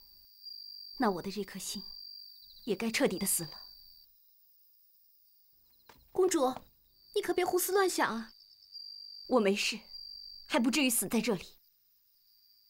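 A young woman speaks emotionally, close by.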